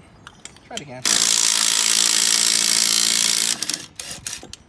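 A power impact driver whirs loudly as it spins a lug nut.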